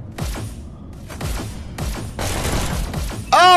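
Pistols fire rapid shots.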